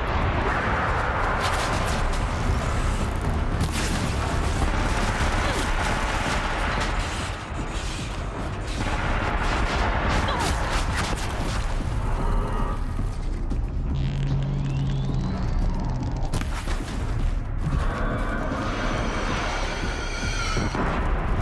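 Fires roar and crackle.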